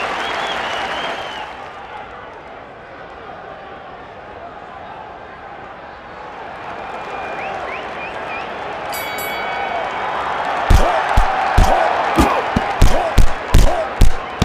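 A crowd roars and murmurs in a large arena.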